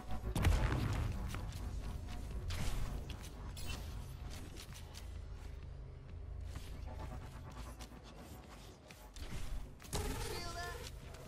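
A game's weapon fires with sharp bursts.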